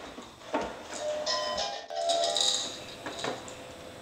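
A toy walker plays a cheerful electronic tune.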